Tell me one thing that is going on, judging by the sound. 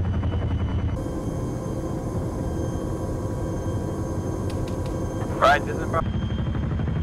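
A helicopter engine whines inside the cabin.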